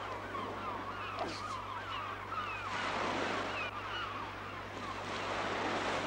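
Waves surge and break against the shore below.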